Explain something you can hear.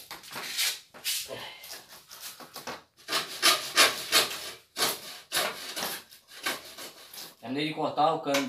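A hand saw rasps back and forth through a metal pipe.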